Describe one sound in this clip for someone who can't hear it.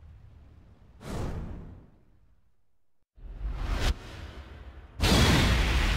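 A sharp burst booms with a flash.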